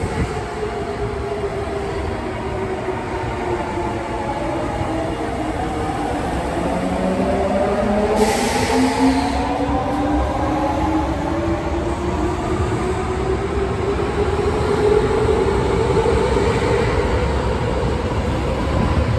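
An electric subway train pulls away from a platform, its motors whining as they rise in pitch.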